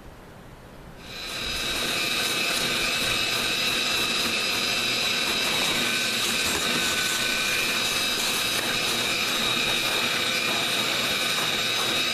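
A vacuum cleaner hums and whooshes loudly as it sucks up dirt close by.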